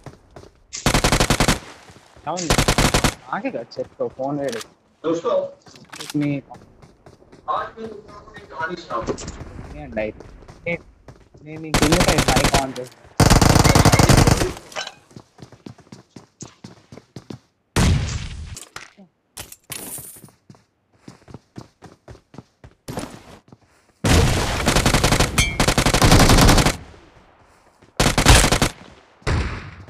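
An automatic rifle fires in short bursts.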